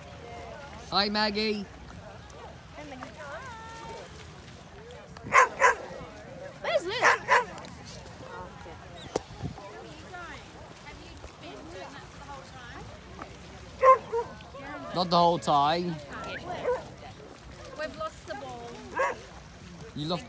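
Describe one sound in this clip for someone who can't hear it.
Dogs bark nearby.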